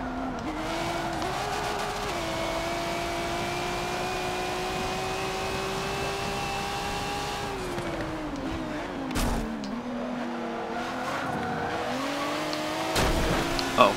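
A racing car engine roars, shifting gears up and down.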